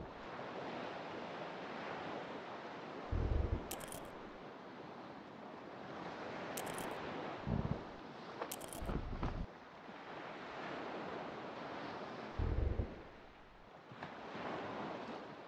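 Ocean waves wash and splash steadily.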